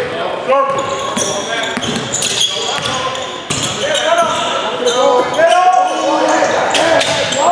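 A basketball bounces on a hardwood floor, echoing in a large hall.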